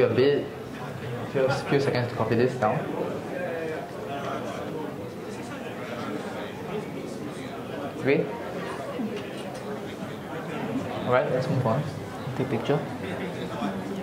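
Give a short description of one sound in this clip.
A woman speaks calmly through a microphone in a large room.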